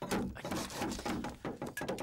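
A cleaver chops on a wooden board.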